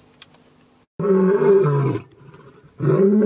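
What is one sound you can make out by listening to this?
A lion roars loudly and close by.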